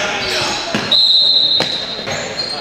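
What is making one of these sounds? A referee's whistle blows shrilly in an echoing hall.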